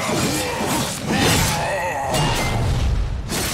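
A fiery blast bursts loudly.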